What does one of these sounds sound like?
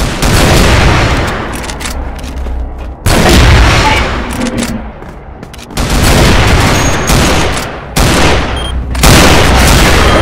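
A rifle fires loud booming shots that echo and fade.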